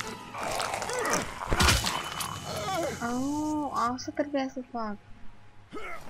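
A creature snarls and groans up close.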